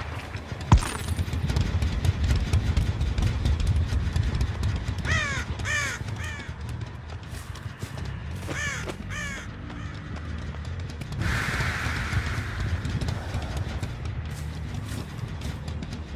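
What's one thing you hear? Heavy footsteps thud steadily along the ground.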